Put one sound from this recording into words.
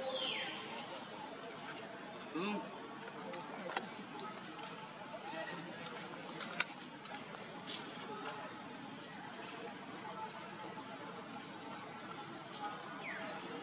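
A baby monkey suckles softly.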